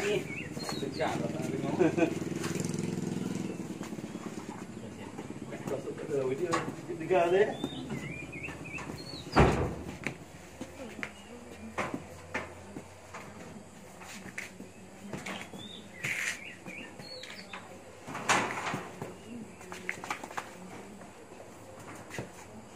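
A metal bed frame rattles and clanks as men push it.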